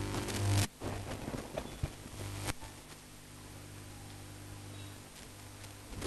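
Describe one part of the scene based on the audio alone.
A marker squeaks softly as it draws lines on a board.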